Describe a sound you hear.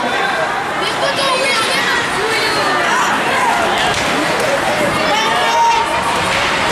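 Young voices shout and call out in a large echoing rink.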